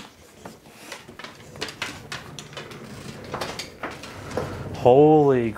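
A dog's claws tap and click on a wooden floor.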